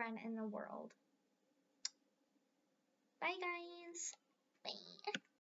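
A young girl speaks calmly and close by.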